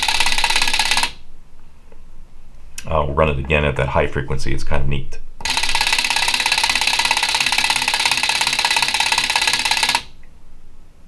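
Relays on a circuit board click and buzz rapidly.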